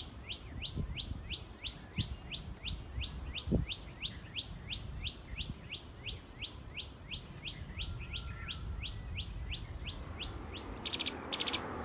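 A small bird calls with rapid, repeated chirps.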